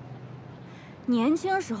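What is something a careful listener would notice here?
A young woman replies calmly, close by.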